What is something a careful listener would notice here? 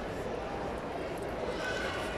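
A person walks on a hard floor in a large echoing hall.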